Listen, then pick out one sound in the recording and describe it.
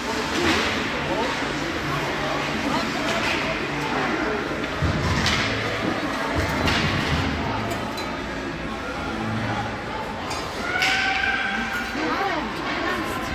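Spectators chatter and call out in a large echoing rink.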